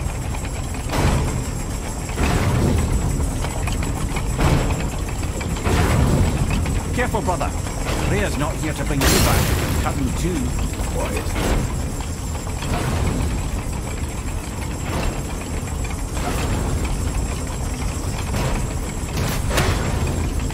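Heavy metal blows clang sharply, again and again.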